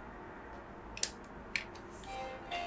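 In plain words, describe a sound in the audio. A plastic cover clicks into place.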